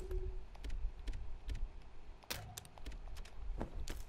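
Menu selections click softly.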